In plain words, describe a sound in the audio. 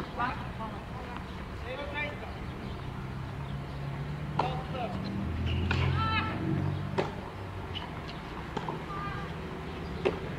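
A tennis ball bounces on a clay court.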